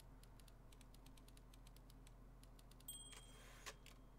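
Typewriter keys clack in quick succession.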